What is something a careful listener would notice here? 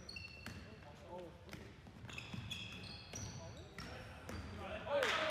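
Players shout and call out in a large echoing gym.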